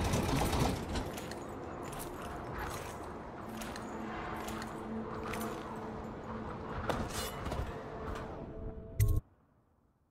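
Hands clank on a metal ladder during a climb.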